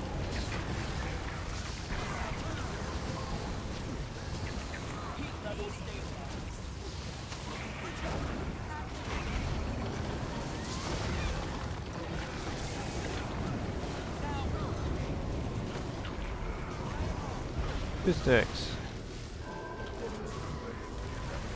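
Game spells crackle and boom in a dense stream.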